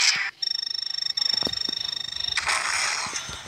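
Electronic tones tick rapidly as a score counts up.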